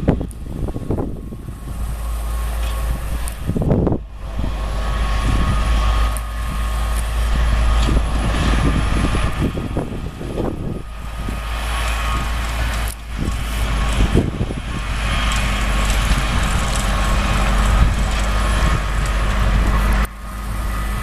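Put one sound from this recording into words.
A harvesting machine clatters and whirs as it works.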